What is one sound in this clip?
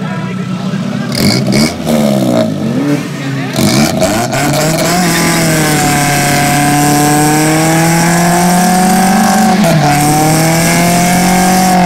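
A truck engine revs hard, rising and falling, then holds a high steady roar.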